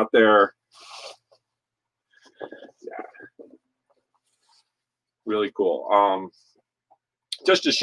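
Fabric rustles as a jacket is handled.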